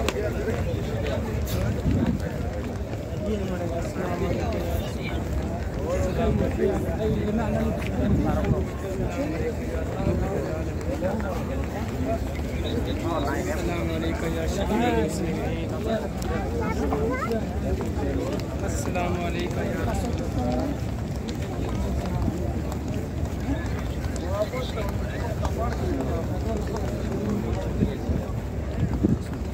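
A crowd of men chatters nearby outdoors.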